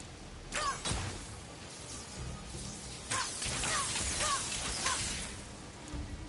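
A magical energy hums and crackles with bright shimmering bursts.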